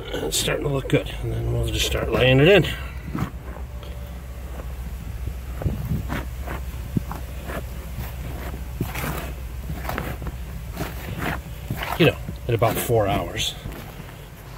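A hand scrapes and scoops loose soil.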